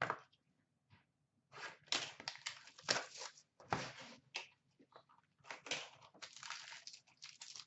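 Hands rustle and tap through packs of cards.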